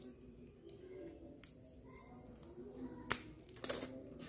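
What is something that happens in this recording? Scissors snip through a plastic wrapper.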